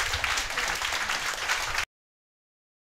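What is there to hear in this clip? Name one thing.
A young man claps his hands.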